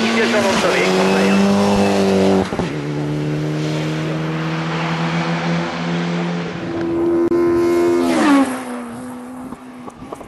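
A rally car engine roars loudly at high revs, shifting gears as it races past.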